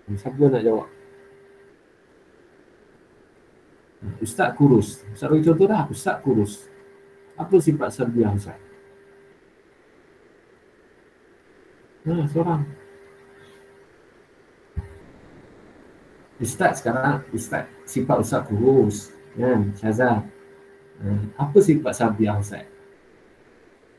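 A man speaks calmly through a microphone in an online call, in short phrases with pauses.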